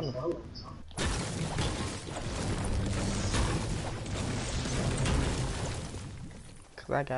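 A pickaxe strikes a wall with repeated thuds.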